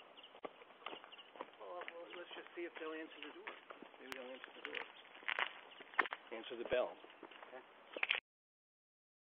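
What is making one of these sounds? Several men talk and call out outdoors, some way off.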